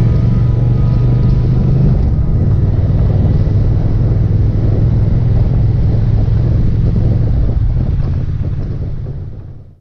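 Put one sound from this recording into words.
Wind buffets past the rider.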